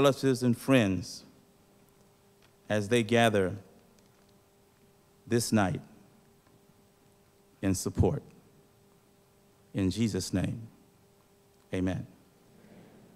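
A man speaks slowly and deliberately into a microphone, with long pauses.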